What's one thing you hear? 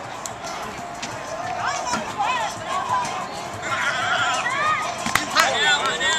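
A crowd shouts and cheers at a distance outdoors.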